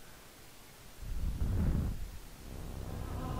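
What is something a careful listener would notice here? A man talks calmly into a close headset microphone.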